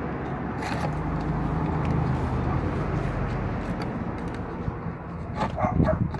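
A screwdriver scrapes against plastic.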